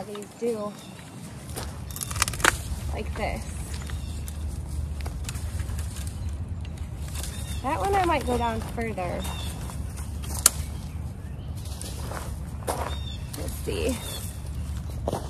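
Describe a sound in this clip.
Pruning shears snap through branches.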